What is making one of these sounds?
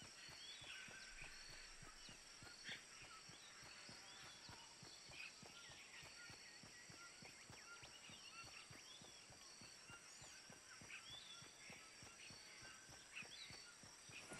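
Quick footsteps run over grass and dirt.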